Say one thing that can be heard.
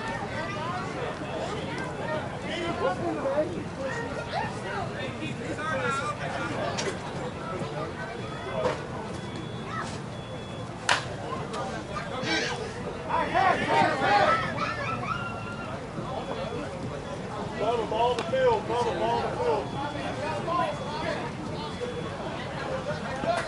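Men talk and call out nearby, outdoors.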